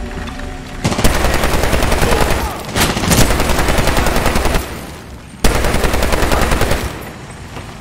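A heavy machine gun fires in long, loud bursts.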